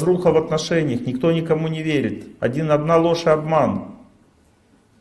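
A middle-aged man speaks calmly and with expression into a microphone.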